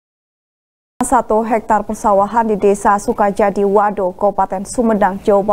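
A woman speaks calmly and clearly into a microphone, like a news reader.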